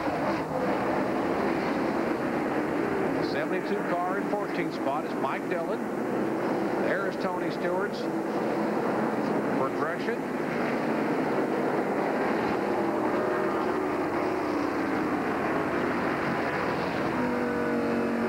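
Race car engines roar past at high speed.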